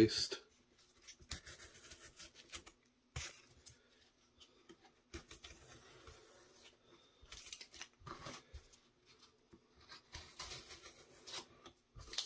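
A craft knife scrapes and cuts through stiff foam board.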